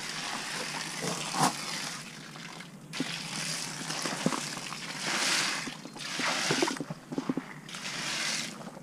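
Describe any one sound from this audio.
Footsteps crunch on gravel close by.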